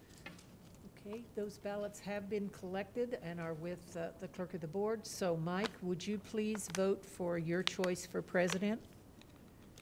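An elderly woman speaks calmly through a microphone.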